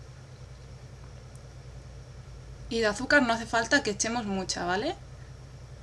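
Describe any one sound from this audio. Grains of sugar pour softly into a ceramic bowl.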